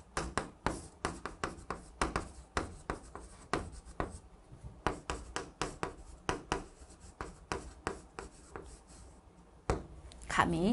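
Chalk taps and scratches quickly on a board.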